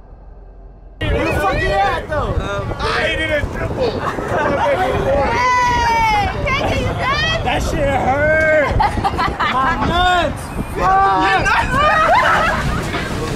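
A young man shouts from the water.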